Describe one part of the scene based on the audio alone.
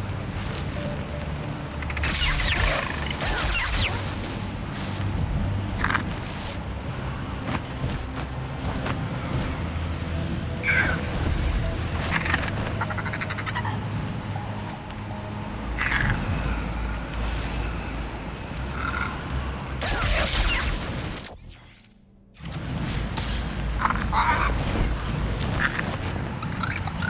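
A large dragon's wings beat and whoosh as it flies.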